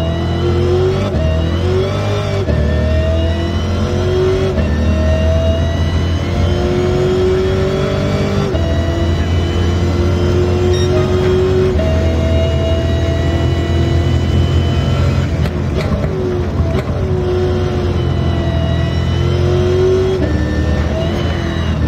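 A car engine roars and revs up through the gears, its pitch rising and dropping with each shift.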